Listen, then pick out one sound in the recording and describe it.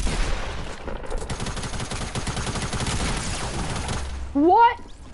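Rapid, dense clattering of building and shooting fills the first few seconds.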